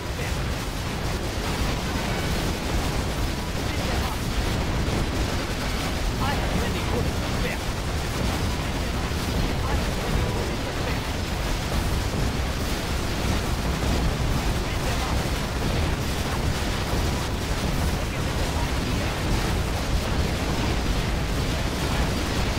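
Explosions boom and rumble without pause in a large battle.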